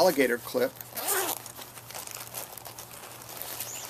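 A fabric pouch rustles as it is opened.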